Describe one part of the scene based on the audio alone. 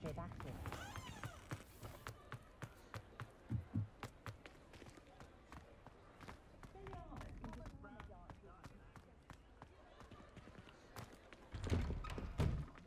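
Footsteps run on cobblestones.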